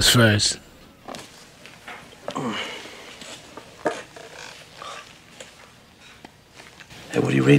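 A young man talks quietly in the background.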